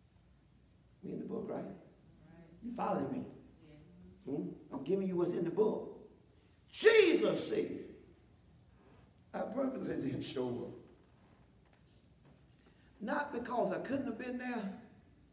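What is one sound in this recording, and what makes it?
A middle-aged man preaches with animation through a headset microphone, in bursts with pauses, in an echoing hall.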